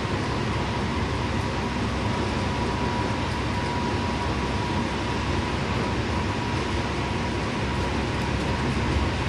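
Tyres roar on the road surface at speed.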